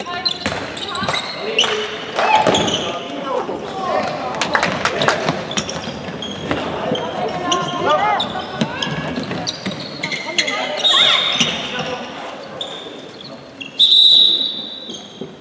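Young women shout and call out across a large echoing hall.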